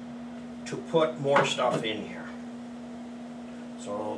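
A pan lid clinks against a pan.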